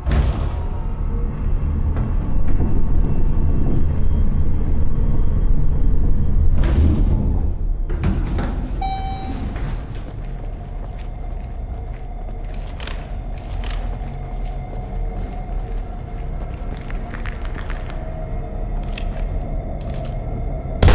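A low rumbling hum drones throughout.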